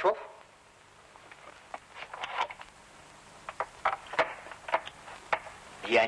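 A door chain rattles and clinks.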